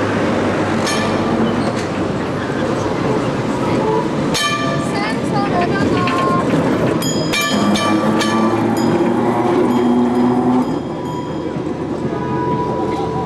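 Steel wheels squeal and screech on the rails.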